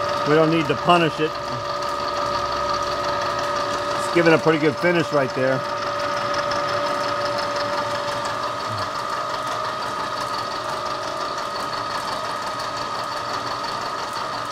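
A milling machine cuts into metal with a steady, high whine.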